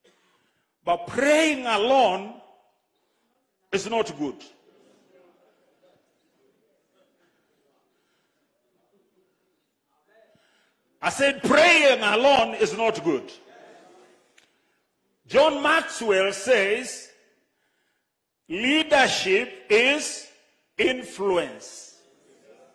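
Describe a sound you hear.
An elderly man preaches with animation into a microphone, in bursts with pauses.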